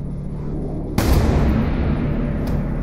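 A pistol shot cracks loudly and echoes.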